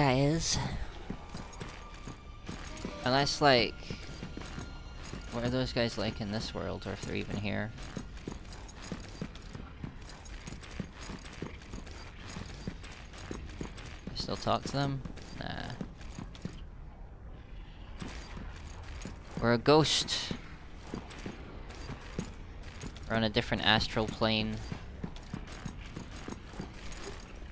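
Footsteps run on a hard stone floor.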